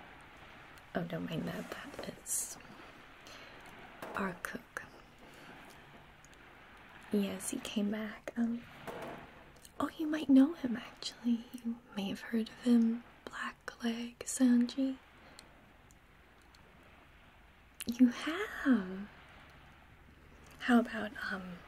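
Small beads click and rattle under a young woman's fingers.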